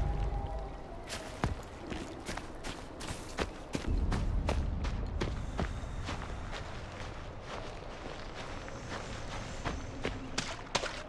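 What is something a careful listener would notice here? Footsteps rustle through grass and over dirt.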